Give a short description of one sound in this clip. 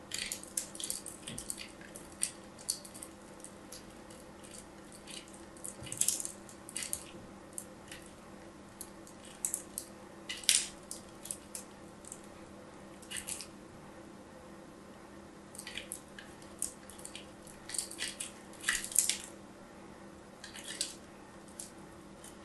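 Soft pieces scrape and crumble against a small metal grater, close up.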